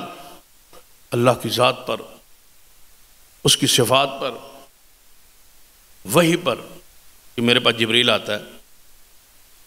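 An elderly man speaks slowly and with emphasis into a microphone, in short bursts with pauses.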